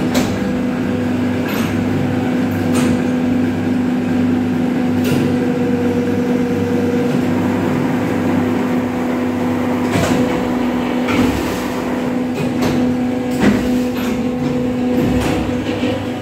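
Metal parts clack and knock sharply now and then.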